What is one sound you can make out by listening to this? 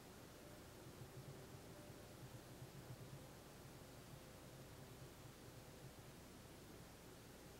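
A man speaks softly and calmly nearby.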